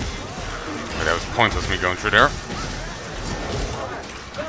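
A heavy blade swings and hacks into flesh.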